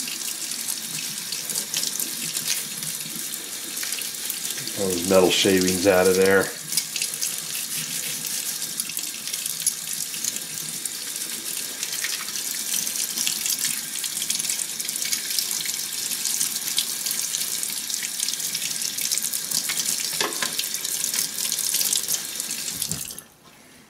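Water runs steadily from a tap and splashes into a basin.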